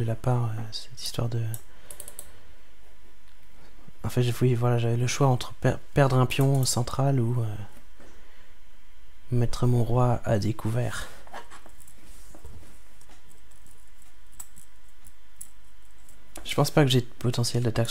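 A man speaks calmly and thoughtfully, close to a microphone, in short bursts.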